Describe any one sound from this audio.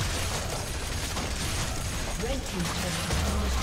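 A stone tower crumbles and collapses with a heavy crash.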